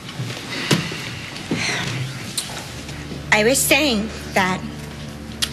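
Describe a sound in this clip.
A young woman speaks emotionally, close to a microphone.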